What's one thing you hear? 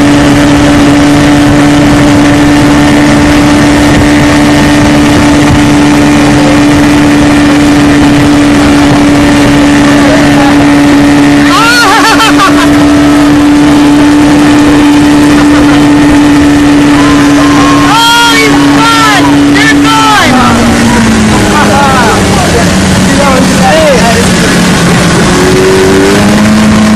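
Water rushes and splashes behind a speeding boat.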